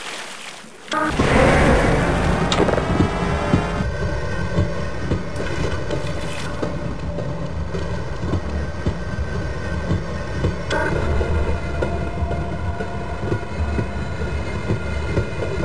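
A vehicle motor hums and rumbles steadily as it rides along a track.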